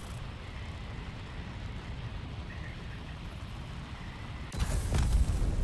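A missile rushes in a low roar as it dives.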